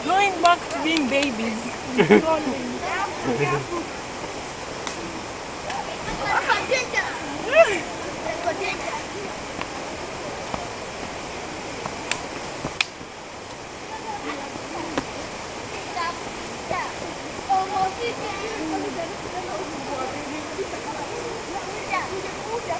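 Several men and women talk and call out nearby, outdoors.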